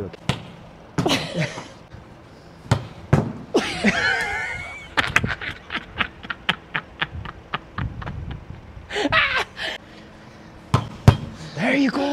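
A volleyball smacks against a forearm.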